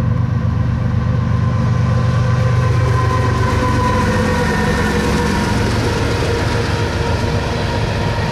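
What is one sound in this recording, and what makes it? Diesel-electric freight locomotives rumble past close by.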